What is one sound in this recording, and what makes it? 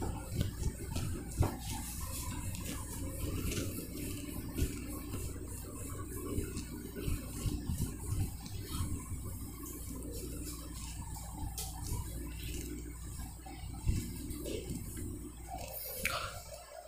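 An eraser rubs and swishes across a whiteboard.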